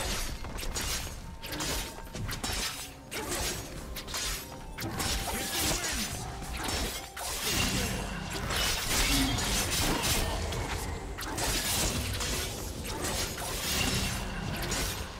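Video game combat effects clash and crackle with spells and strikes.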